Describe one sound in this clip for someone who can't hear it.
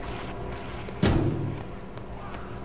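A door swings open with a thud.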